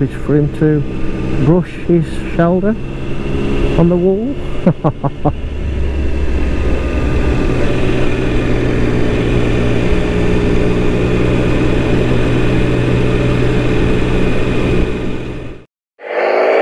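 A motorcycle engine revs through its gears and then drones steadily at speed.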